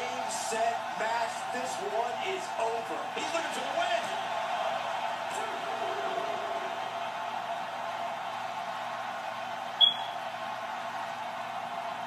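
An arena crowd cheers through a television speaker.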